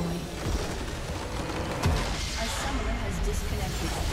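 A game structure shatters with a heavy crash.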